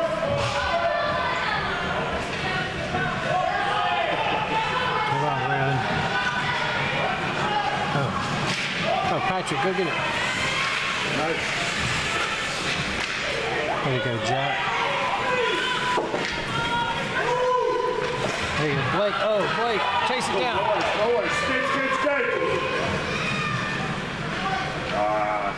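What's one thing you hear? Ice skates scrape and swish across the ice.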